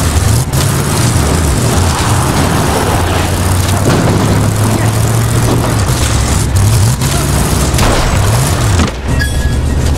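A car engine roars and revs as the car drives over rough ground.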